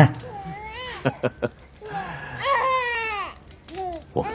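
A baby coos and squeals.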